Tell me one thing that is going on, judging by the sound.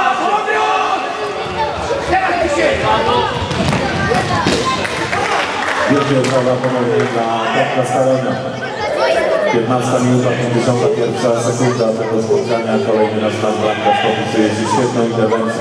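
A ball is kicked with dull thuds in an echoing hall.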